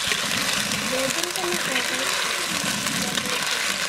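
A spatula scrapes and stirs food in a clay pot.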